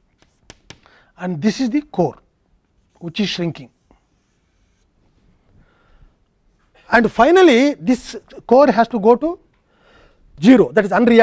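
A middle-aged man lectures calmly through a microphone.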